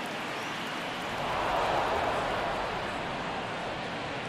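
A crowd cheers briefly and then settles.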